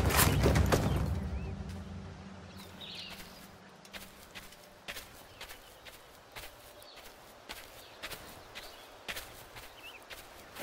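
Footsteps tread on grass.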